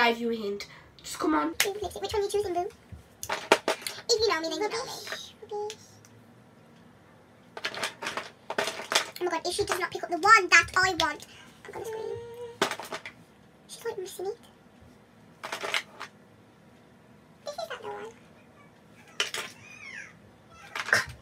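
A girl talks animatedly close by, in bursts.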